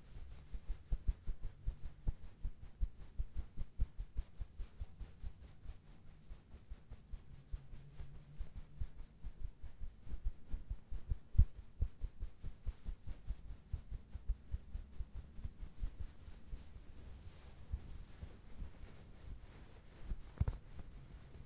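Hands rub and squeeze a soft towel close to a microphone, with soft rustling and muffled thumps.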